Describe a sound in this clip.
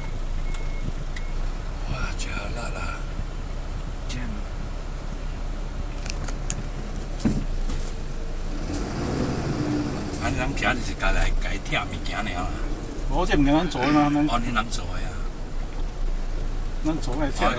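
A vehicle engine hums steadily at low pitch.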